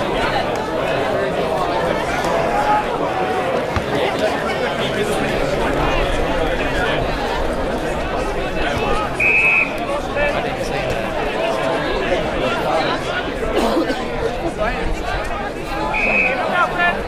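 Players shout and call to each other across an outdoor field.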